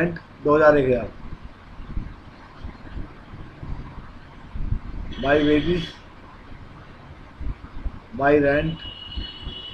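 A young man speaks calmly into a microphone in short bursts.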